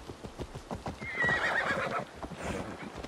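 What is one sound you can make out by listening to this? A horse neighs.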